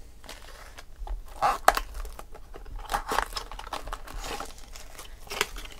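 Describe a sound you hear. Foil card packs crinkle and rustle close by.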